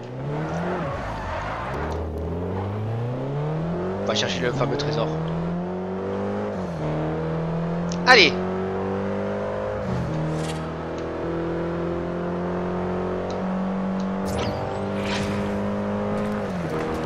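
A car engine revs hard, rising in pitch and dropping with each gear change.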